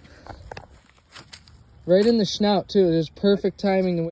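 A fish flops and thrashes on grass.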